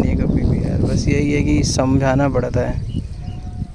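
A young buffalo calf lows close by.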